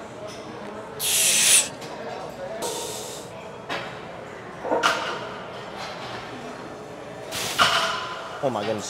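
A man exhales sharply and forcefully while lifting.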